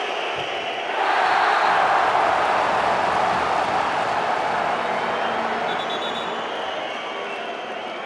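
A crowd roars suddenly louder, then slowly settles.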